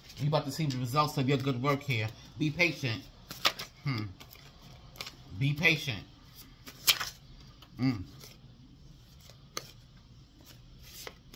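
Paper cards rustle and shuffle in someone's hands.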